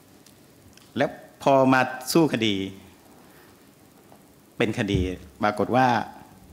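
A middle-aged man speaks calmly into a microphone in short phrases.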